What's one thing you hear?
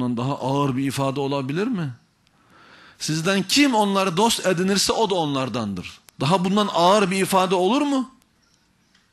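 A man speaks loudly and with animation through a microphone in an echoing hall.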